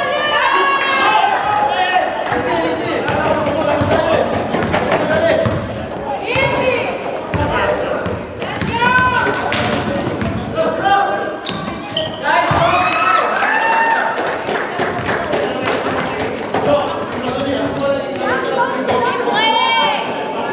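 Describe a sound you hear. A basketball bounces on the court, echoing.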